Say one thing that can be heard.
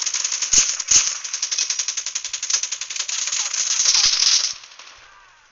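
A machine gun fires a long rapid burst.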